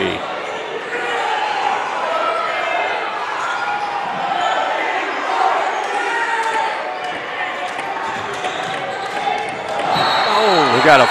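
A large crowd murmurs and cheers in an echoing gym.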